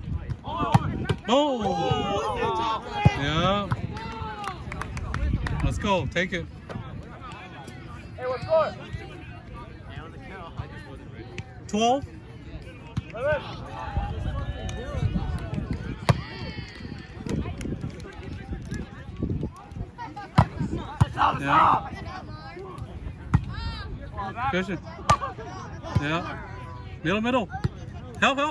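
Young men call out and talk outdoors during a game.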